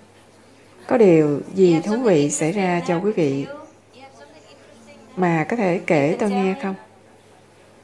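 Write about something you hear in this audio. A woman speaks calmly and gently into a microphone, in short phrases.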